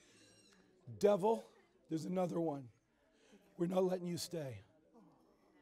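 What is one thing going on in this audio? A man prays aloud with fervour, close by.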